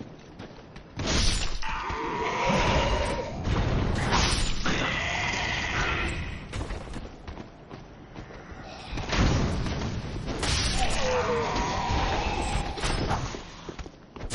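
Swords clash and strike in combat.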